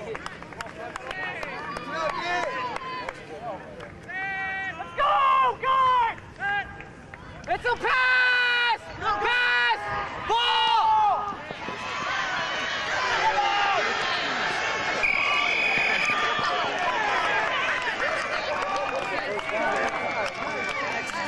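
Young men shout loudly outdoors.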